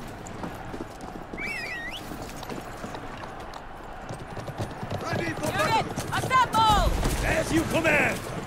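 A horse's hooves clop on stone.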